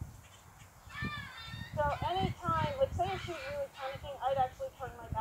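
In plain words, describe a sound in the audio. A young girl talks excitedly close by, in a high voice.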